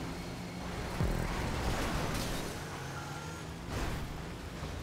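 A vehicle crashes into a truck with a heavy metallic bang.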